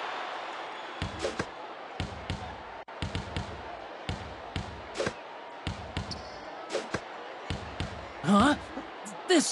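A basketball bounces repeatedly on a wooden court.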